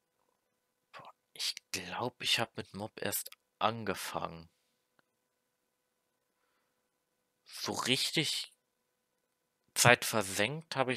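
A young man talks close to a microphone in short bursts, with pauses between.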